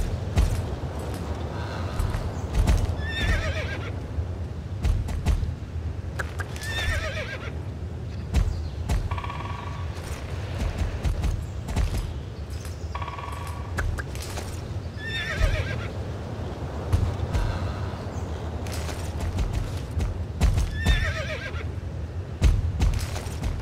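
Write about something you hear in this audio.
A horse gallops steadily, its hooves thudding on grass.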